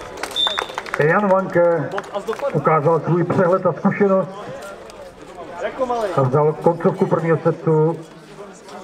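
A man close by talks loudly and with animation.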